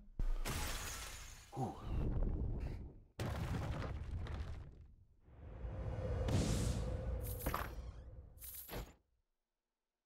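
Loud crashing booms and deep rumbling sound as a giant creature collapses.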